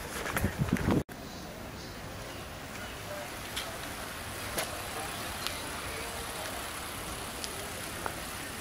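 Bicycles roll past on a paved path.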